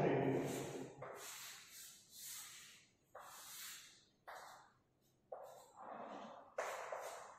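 Chalk scrapes and taps on a blackboard.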